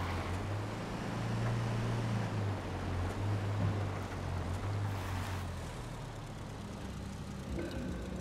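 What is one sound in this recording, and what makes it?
An engine rumbles steadily as a vehicle drives along.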